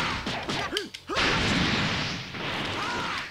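Energy blasts explode with a loud burst.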